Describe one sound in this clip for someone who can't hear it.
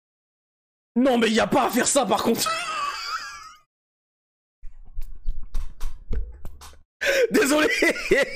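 A young man shouts and laughs excitedly close to a microphone.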